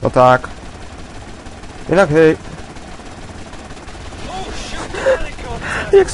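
A helicopter's rotor whirs overhead.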